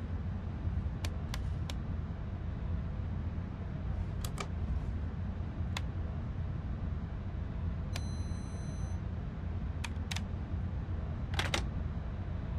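Switches click sharply now and then.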